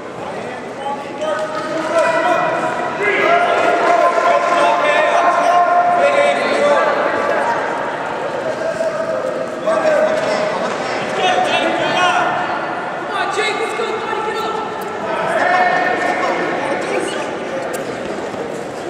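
Young men shout encouragement from the side in a large echoing hall.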